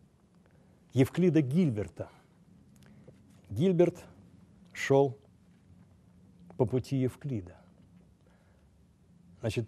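An elderly man speaks slowly and deliberately into a microphone, with pauses between phrases.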